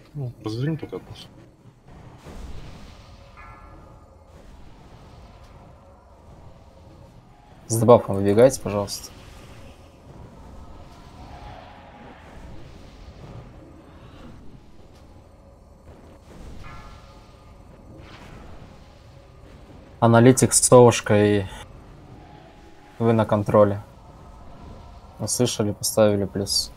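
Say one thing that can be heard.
Magic spells whoosh and crackle during a fantasy battle.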